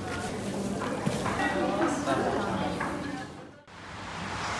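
Dry noodles rustle as they are tossed by hand.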